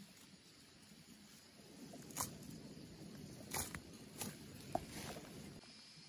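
A knife cuts through leafy stems.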